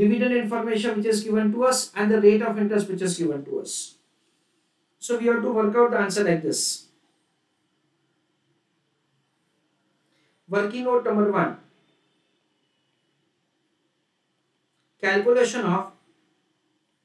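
A man speaks calmly into a close microphone, explaining in short bursts with pauses.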